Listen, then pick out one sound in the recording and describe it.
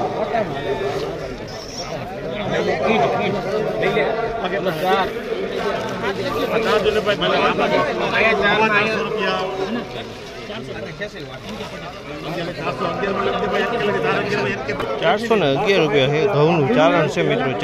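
Several men talk at once with animation, close by, outdoors.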